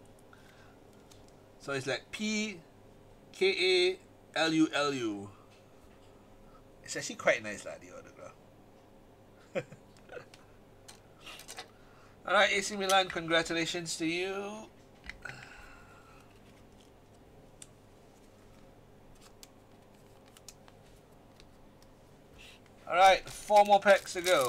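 Plastic card holders click and rustle softly in hands.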